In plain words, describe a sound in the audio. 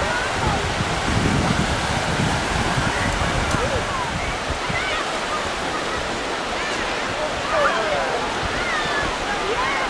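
Children shout and call out in the distance outdoors.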